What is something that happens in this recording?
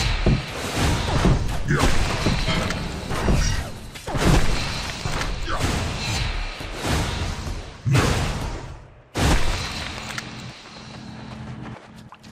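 Magic blasts and sword hits crack and whoosh in a fast game battle.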